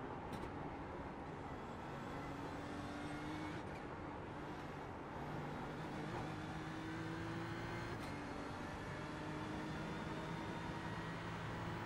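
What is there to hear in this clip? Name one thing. A racing car engine roars and revs through the gears.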